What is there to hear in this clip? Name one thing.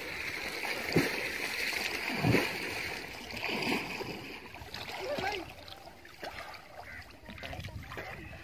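Water laps and splashes close by.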